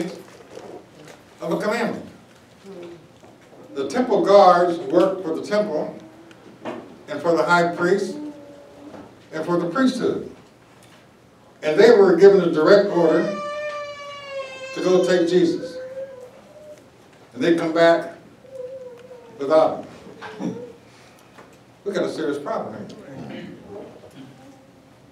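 A middle-aged man speaks slowly and emphatically into a close microphone, in short bursts with pauses.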